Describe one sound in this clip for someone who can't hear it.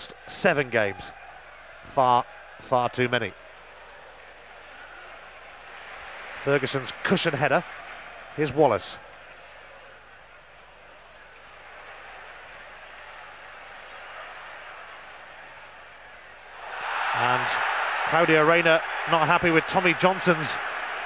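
A large stadium crowd murmurs steadily, then swells into a loud roar.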